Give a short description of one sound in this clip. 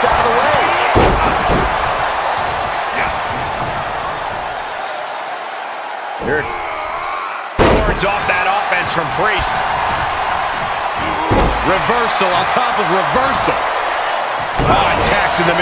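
Heavy thuds of bodies hit the ring mat.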